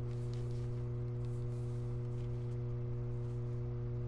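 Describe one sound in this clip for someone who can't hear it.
A sheet of paper rustles as it is picked up.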